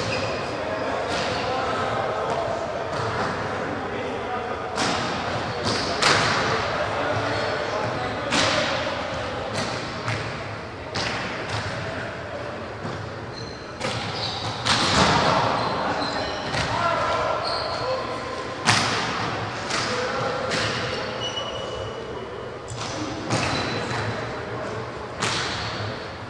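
A crowd murmurs and calls out in a large echoing hall.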